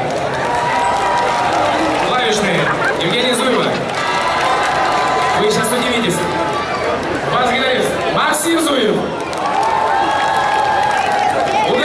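A man sings into a microphone over the band.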